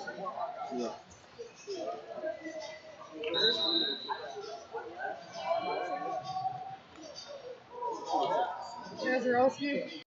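Several men and women talk and call out nearby in a large echoing hall.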